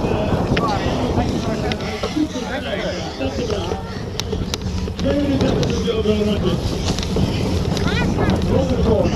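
Spectators along the course cheer and shout outdoors.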